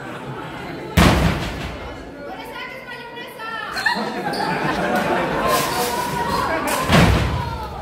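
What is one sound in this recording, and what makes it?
A body slams onto a wrestling ring mat with a loud thud.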